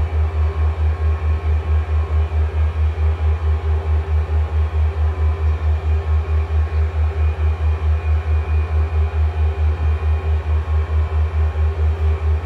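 Airliner engines drone with a low, rapid throb.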